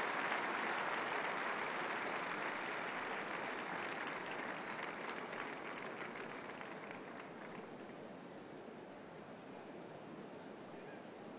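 A large outdoor crowd applauds and cheers, slowly fading.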